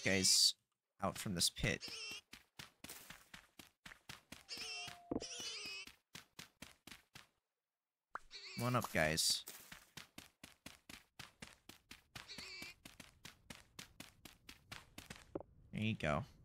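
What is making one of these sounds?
Footsteps tread steadily over grass and stone.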